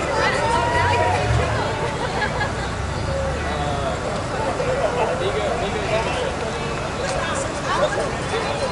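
A crowd of men and women chatter and call out nearby, outdoors.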